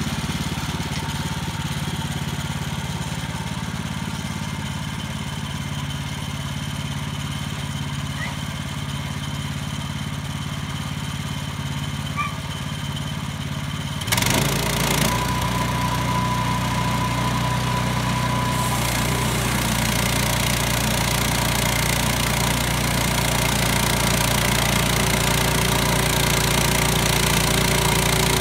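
A sawmill engine hums steadily outdoors.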